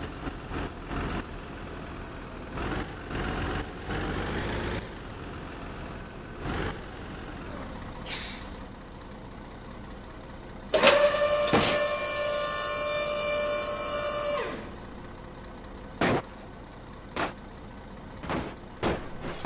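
A truck engine idles steadily.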